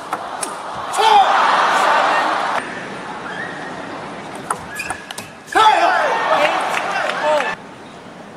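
A young man shouts loudly in a large echoing hall.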